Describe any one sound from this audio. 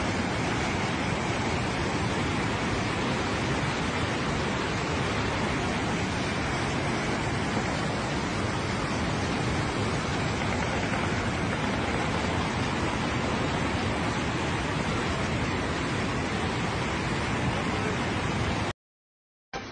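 Muddy floodwater roars and rushes loudly down a rocky slope.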